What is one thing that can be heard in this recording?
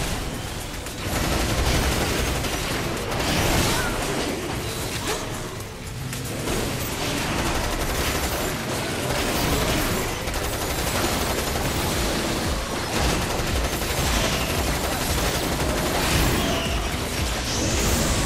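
Gunfire and blasts crackle in quick bursts.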